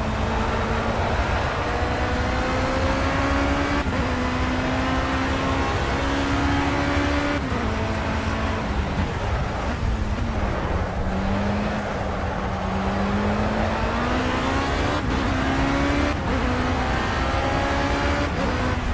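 A racing car engine screams, rising in pitch through each gear and dropping at each gear change.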